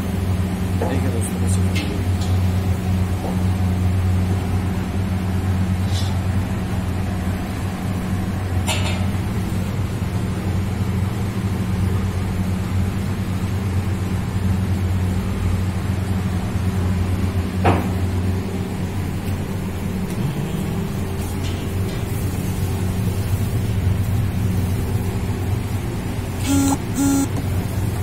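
A steady low hum of burners and fans fills the room.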